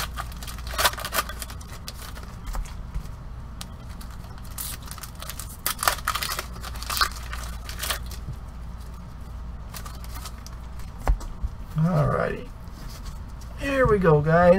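Plastic-wrapped card packs rustle and crinkle as they are handled.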